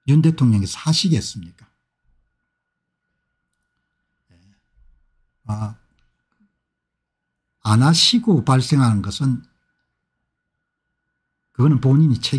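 An older man talks calmly and close into a microphone, in short bursts with pauses.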